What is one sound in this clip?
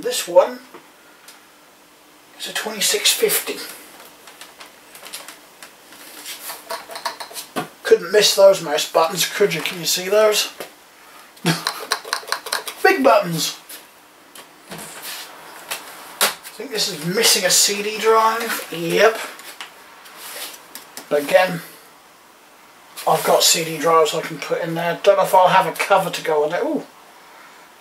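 A man talks calmly and close by, in bursts with pauses.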